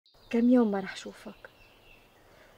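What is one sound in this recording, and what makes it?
A woman speaks tensely nearby.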